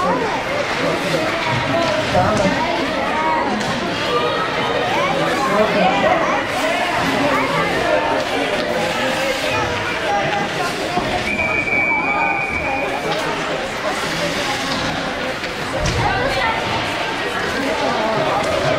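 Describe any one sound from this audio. Young children shout and chatter nearby in a large echoing hall.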